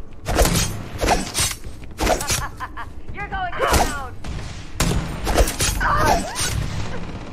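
Heavy blows thud and clang in quick succession.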